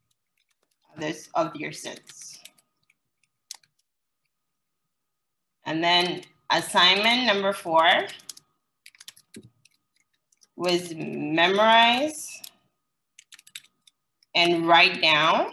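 A woman speaks calmly over an online call, dictating in short phrases.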